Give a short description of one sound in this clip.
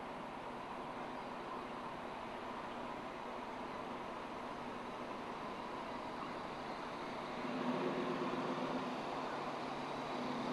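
A minivan's engine hums as the van drives slowly past close by.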